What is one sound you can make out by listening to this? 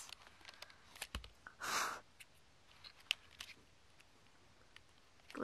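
A plastic device rubs and knocks softly against a carpet, close by.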